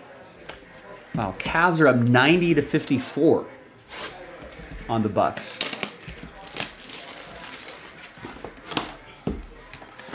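Cardboard and plastic wrapping rustle and crinkle as a box is handled.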